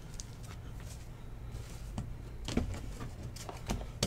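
A cardboard box is handled and tapped on a table.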